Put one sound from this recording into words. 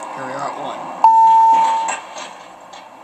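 A lift bell chimes once.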